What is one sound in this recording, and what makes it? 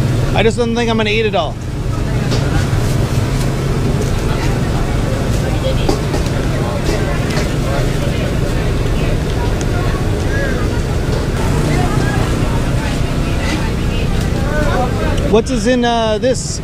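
A crowd chatters throughout.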